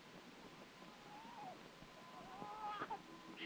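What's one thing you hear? A baby cries.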